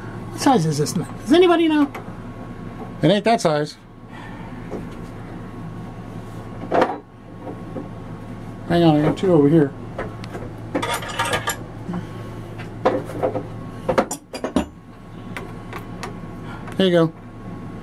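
A metal wrench clinks against a pipe fitting.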